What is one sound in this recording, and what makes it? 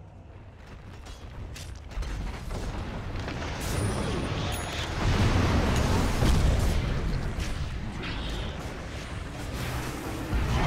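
Video game battle effects crash and whoosh as spells blast and weapons clash.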